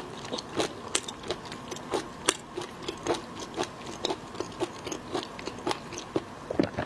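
A woman chews and slurps food wetly, close to a microphone.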